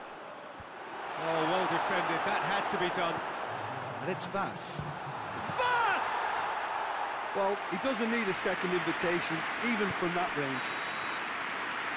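A large stadium crowd roars and murmurs.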